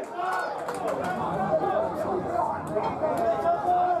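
Men argue loudly outdoors.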